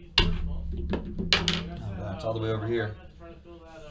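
Dice clatter and roll across a table.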